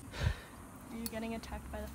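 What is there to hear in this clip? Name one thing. A young woman talks softly and close by.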